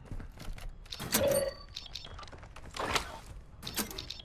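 A metal box clatters open.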